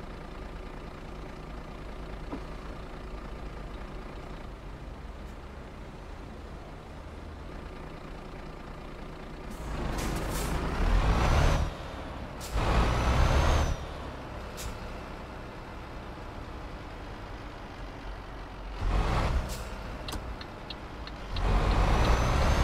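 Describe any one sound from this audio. A truck engine rumbles steadily and revs up in loud bursts.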